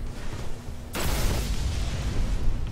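A loud blast booms in a video game.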